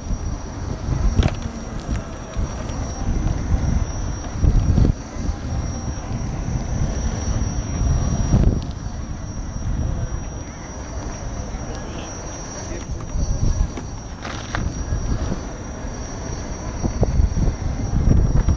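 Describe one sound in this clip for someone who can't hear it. A steady high electric motor whine runs throughout.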